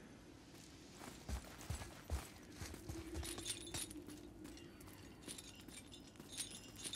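A heavy chain rattles and clinks as a man climbs it.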